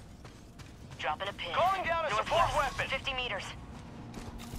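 A young man speaks into a microphone close by.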